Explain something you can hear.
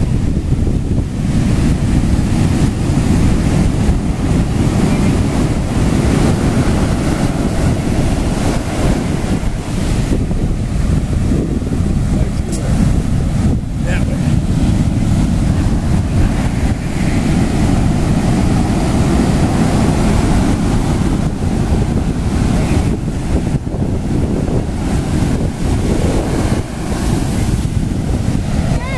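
Waves crash and roar steadily onto a beach, outdoors in wind.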